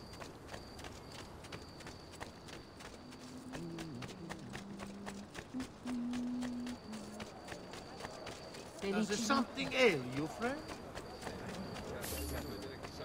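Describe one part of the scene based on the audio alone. Quick footsteps run across stone paving.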